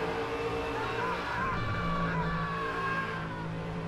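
Tyres squeal on a tight corner.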